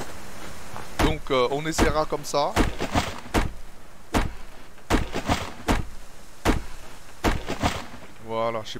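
An axe chops into a tree trunk with sharp, repeated thuds.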